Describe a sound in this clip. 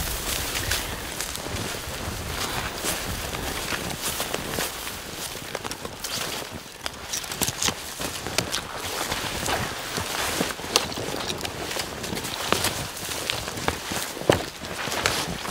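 Twigs and branches snap and rustle as people push through brush.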